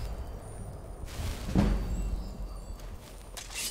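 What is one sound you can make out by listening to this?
A magic spell whooshes and shimmers with a bright chime.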